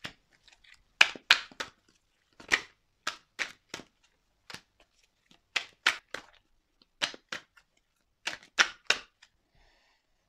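Playing cards are shuffled with soft clicks.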